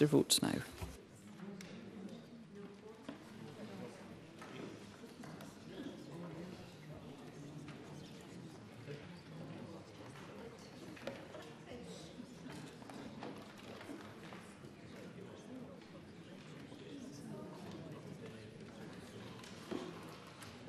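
A crowd murmurs quietly in a large hall.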